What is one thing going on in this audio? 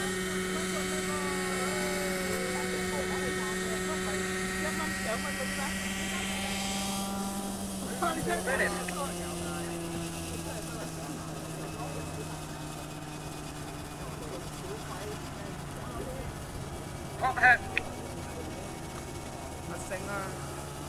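A model helicopter engine whines steadily, then its pitch drops as it lands and idles.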